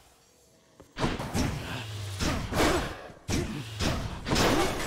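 Magical bursts whoosh and crackle in quick succession.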